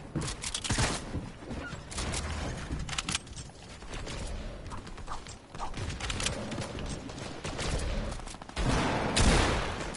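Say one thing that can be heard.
Wooden walls clatter into place in a video game.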